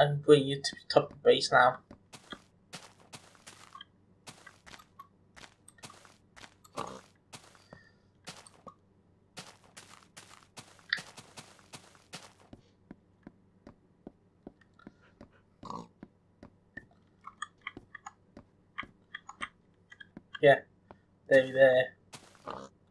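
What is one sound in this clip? A pig grunts.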